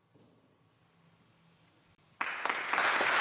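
A string quartet plays a soft, held chord in an echoing hall.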